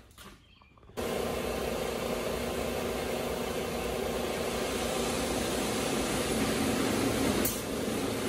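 A floor grinding machine runs with a steady loud drone.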